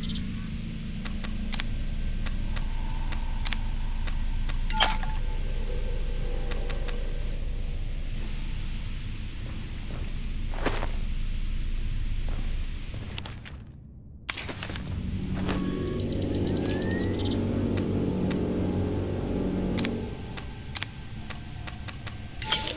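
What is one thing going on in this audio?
Short electronic clicks and blips sound as menu items are selected.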